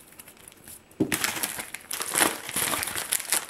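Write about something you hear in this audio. A plastic padded mailer is torn open.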